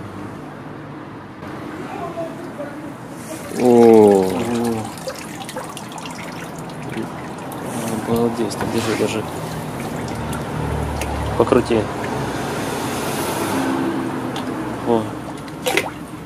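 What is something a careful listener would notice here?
Water splashes and drips as a soaked clump is lifted out of a tub.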